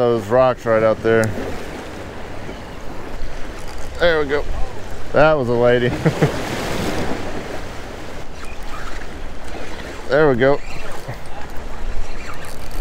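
Small waves wash against rocks.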